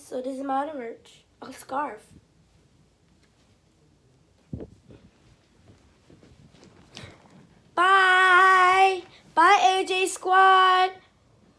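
A young girl sings loudly and close by.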